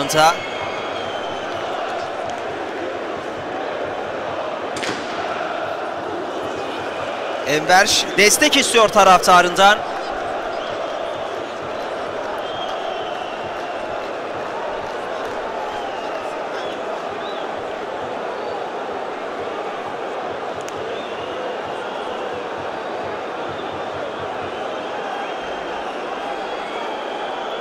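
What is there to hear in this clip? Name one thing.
A large stadium crowd roars and chants steadily outdoors.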